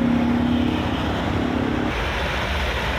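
An excavator engine rumbles and hums nearby.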